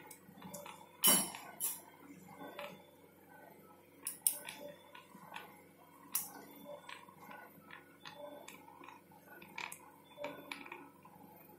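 Metal surgical clamps click and clink now and then.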